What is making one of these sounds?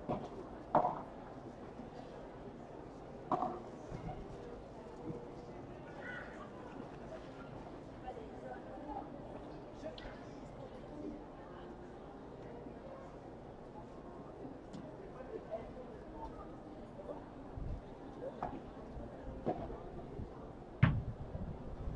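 Players hit a ball with paddles, with sharp pops now and then.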